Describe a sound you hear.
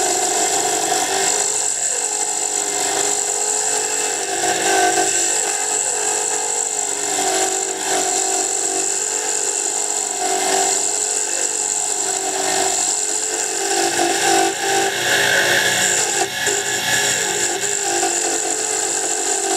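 A wood lathe spins with a steady hum.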